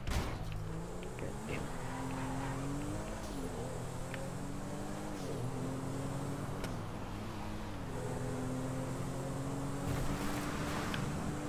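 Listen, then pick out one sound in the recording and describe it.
A car engine hums steadily and shifts up and down through the gears.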